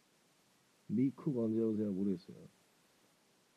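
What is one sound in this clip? A young man speaks briefly and softly, close to a phone microphone.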